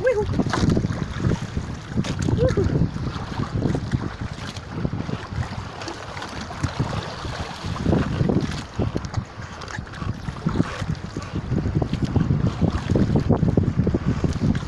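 A large wet fish slaps and rustles as it is handled.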